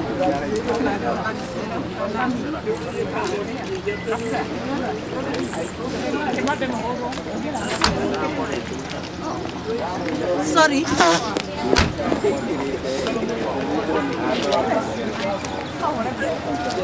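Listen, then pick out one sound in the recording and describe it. A crowd of adult women and men chat at the same time nearby, outdoors.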